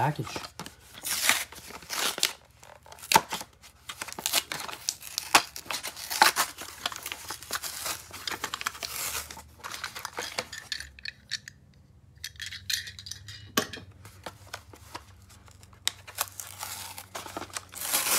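Stiff plastic packaging crinkles and crackles close by.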